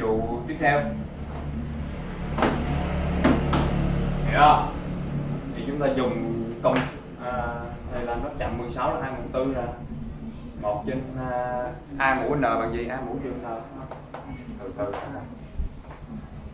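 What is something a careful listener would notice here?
A young man speaks calmly, explaining, close by.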